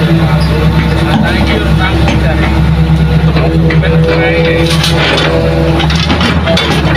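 Excavator hydraulics whine as the arm moves.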